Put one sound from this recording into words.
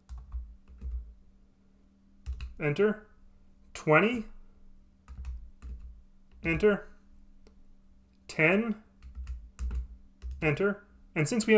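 Calculator buttons click softly as a finger presses them.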